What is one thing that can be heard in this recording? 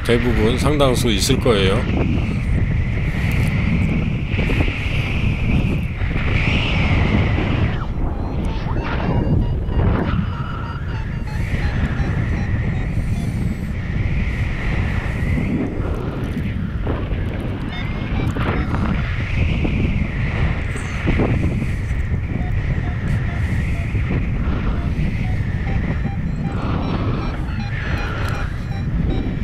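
Strong wind rushes and buffets loudly around the microphone.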